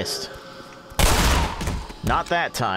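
A shotgun fires with a loud, sudden blast.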